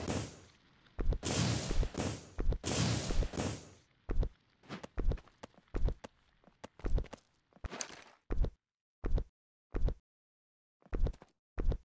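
Footsteps thud rhythmically on the ground.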